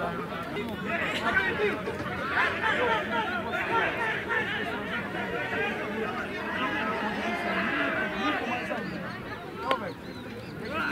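A crowd of boys shouts and cheers outdoors.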